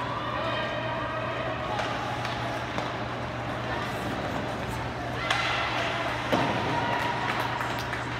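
A crowd of spectators calls out and chatters in a large echoing arena.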